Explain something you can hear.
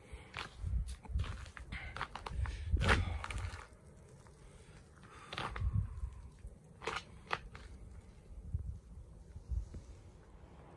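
Footsteps crunch through deep snow.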